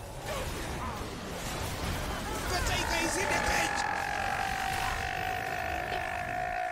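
Magic spells whoosh and crackle in a fast video game battle.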